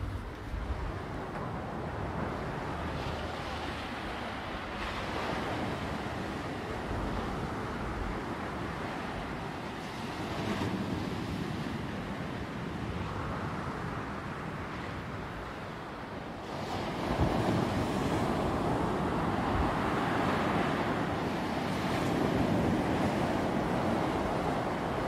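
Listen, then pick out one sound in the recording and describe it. Waves crash and wash onto a pebble shore.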